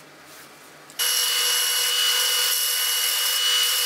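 A belt sander whirs loudly as metal is ground against it.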